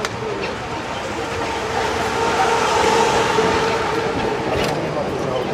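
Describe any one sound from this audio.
A bus engine idles close by.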